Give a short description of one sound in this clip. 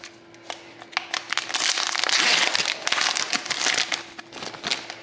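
A plastic card holder rattles and scrapes as it is handled.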